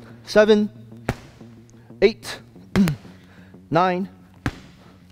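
A man grunts sharply with each effort.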